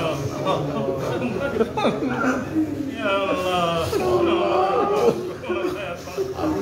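Several men murmur responses to a prayer.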